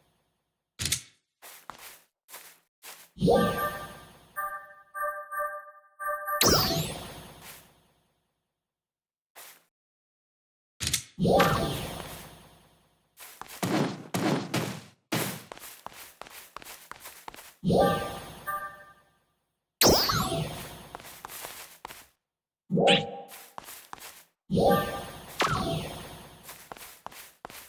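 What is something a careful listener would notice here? Short chiming game sounds ring out as building pieces are placed.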